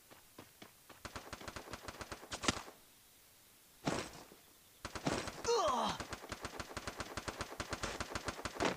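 Quick footsteps patter on grass and ground.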